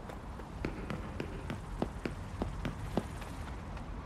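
Footsteps thud steadily on wooden boards and stone.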